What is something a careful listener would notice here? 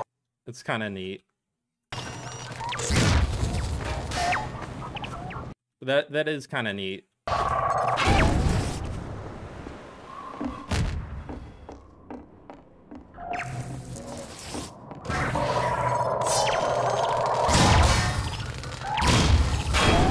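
Electric zaps crackle from a glowing robot ball.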